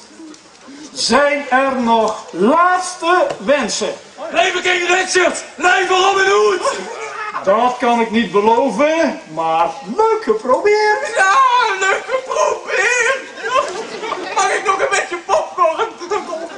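A young man sings loudly outdoors, carrying a strong melody.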